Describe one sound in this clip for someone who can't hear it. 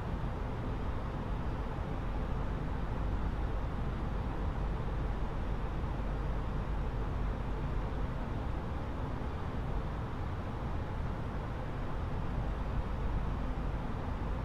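Jet engines and rushing air drone steadily.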